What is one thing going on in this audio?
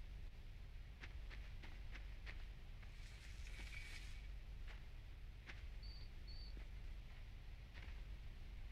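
Small footsteps patter softly over the ground.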